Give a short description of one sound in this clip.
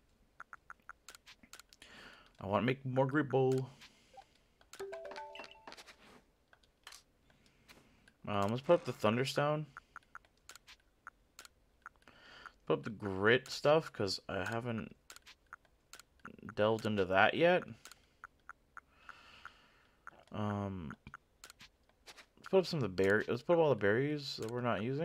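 Short electronic blips tick as a menu cursor moves.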